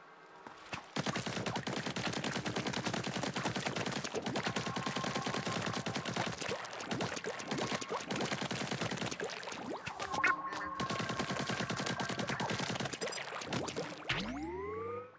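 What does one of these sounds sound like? Ink sprays out in a fast, steady stream of wet splats.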